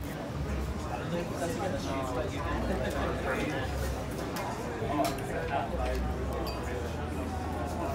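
Wine glugs as it pours from a bottle into a glass.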